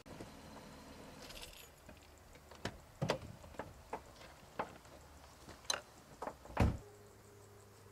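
A car door opens and shuts with a thud.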